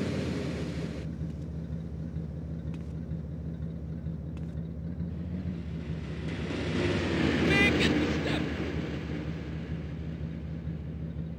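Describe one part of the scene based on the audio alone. A car engine hums nearby.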